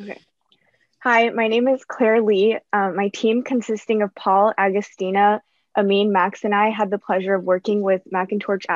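A young woman speaks steadily over an online call.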